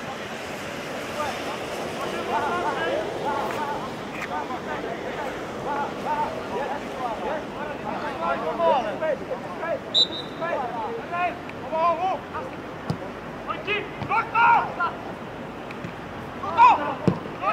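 Players shout and call to each other across an open pitch outdoors.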